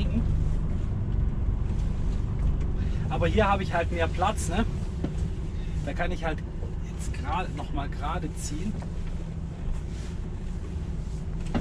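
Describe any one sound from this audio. A truck engine rumbles low and steady from inside the cab.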